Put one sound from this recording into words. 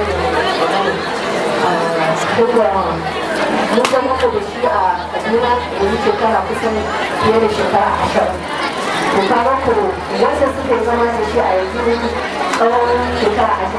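A woman speaks calmly into a microphone, heard over loudspeakers.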